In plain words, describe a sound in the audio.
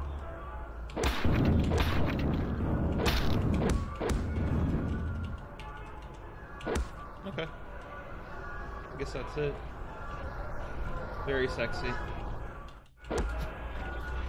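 A boot kicks hard against wood with a heavy thud.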